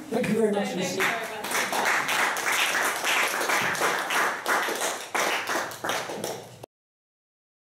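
A small group applauds in a room.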